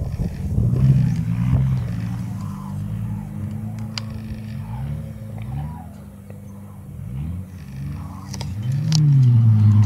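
An off-road buggy's engine revs and roars as it drives through mud.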